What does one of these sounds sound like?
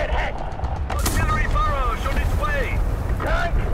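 A tank explodes with a loud boom.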